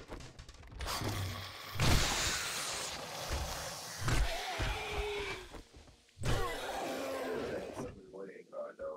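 Heavy blows thud into a body.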